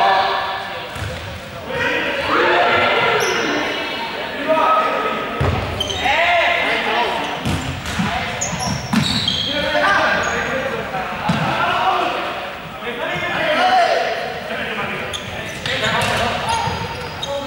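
Many young people shout and call out in a large echoing hall.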